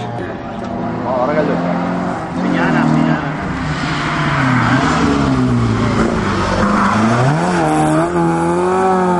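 A second rally car engine revs hard as the car approaches and passes close by.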